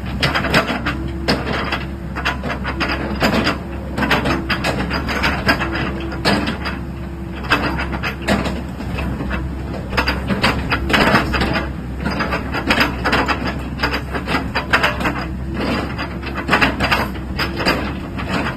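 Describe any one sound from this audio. Hydraulics whine as a mini excavator's boom and bucket move.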